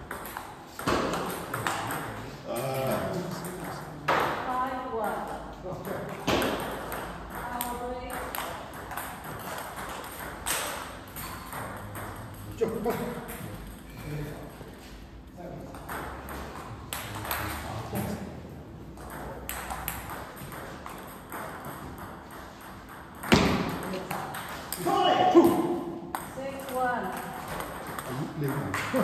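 A table tennis ball clicks back and forth on paddles and tables in an echoing hall.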